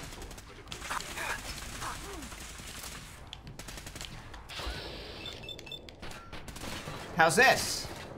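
A rifle is reloaded with mechanical clicks and clunks.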